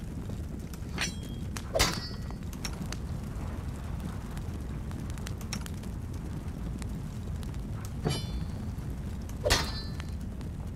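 Short metallic clinks of armour and weapons ring out now and then.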